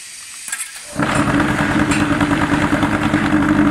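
A block-making machine starts up and vibrates with a loud, steady rattling hum.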